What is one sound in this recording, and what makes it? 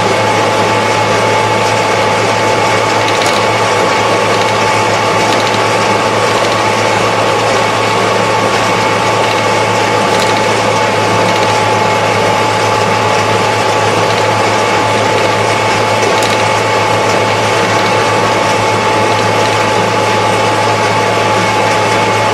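A tractor engine drones steadily from inside the cab.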